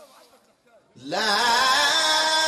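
A man chants loudly into a microphone, his voice ringing through loudspeakers.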